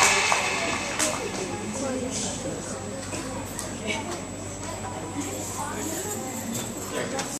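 Young girls sing together.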